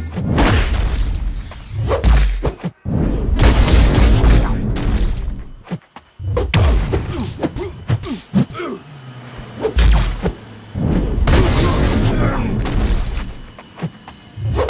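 Punches and blasts thud and crash in a game fight.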